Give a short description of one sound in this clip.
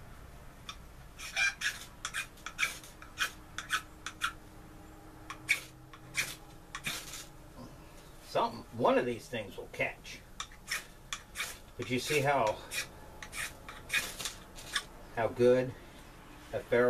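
A ferro rod scrapes sharply against a steel striker, again and again.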